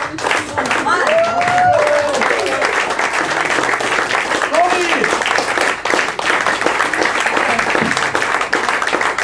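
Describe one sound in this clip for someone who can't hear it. Several people clap steadily.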